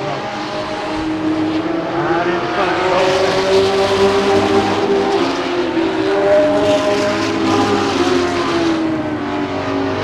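Race car engines roar loudly, rising and falling in pitch as the cars speed past.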